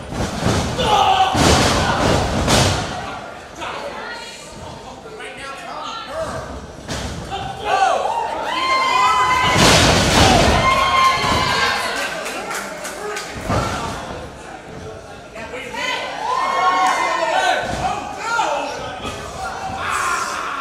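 Bodies slam heavily onto a mat.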